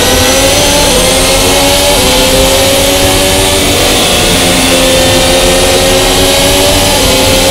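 Several race car engines scream at high revs, shifting up through the gears.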